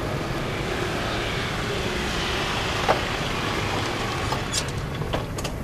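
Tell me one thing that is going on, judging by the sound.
A motor scooter engine hums as it rolls up and stops.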